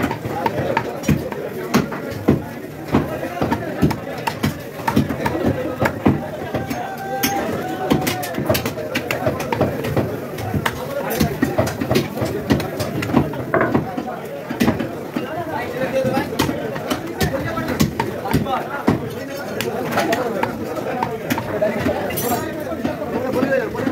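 A cleaver chops through meat and bone on a wooden block with repeated sharp thuds.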